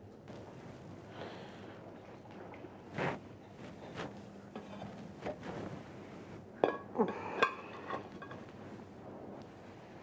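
Metal tongs clink against a pot and a plate.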